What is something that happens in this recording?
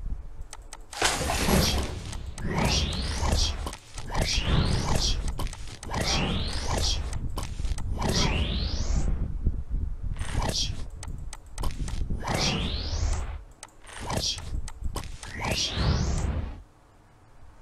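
Game reward sounds chime and whoosh again and again, each with a rising whistle.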